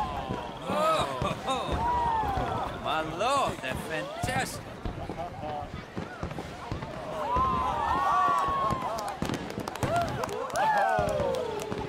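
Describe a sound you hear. Fireworks pop and crackle in the sky.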